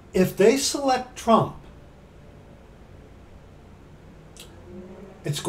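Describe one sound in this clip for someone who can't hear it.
A middle-aged man speaks emphatically and close up, pausing between phrases.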